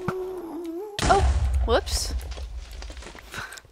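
A fireball bursts with a loud roar.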